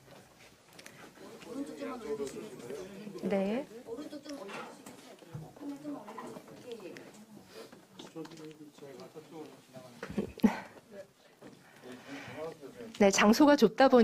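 Several men and women chat quietly among themselves in a room.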